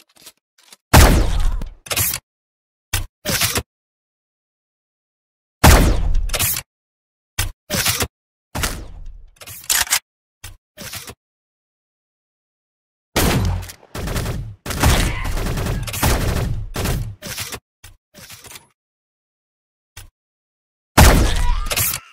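A rifle fires with a loud crack in a video game.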